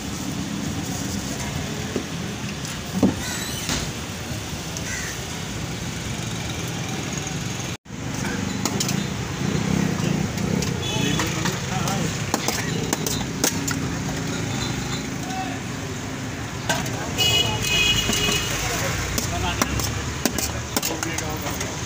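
A busy street murmurs steadily in the background.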